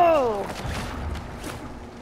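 An explosion bursts in water, throwing up a splash.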